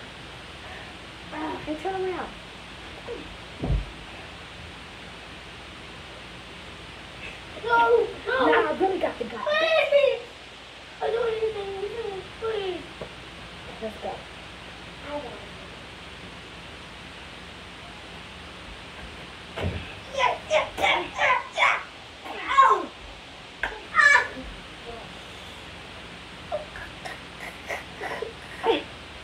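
A small child squeals and babbles close by.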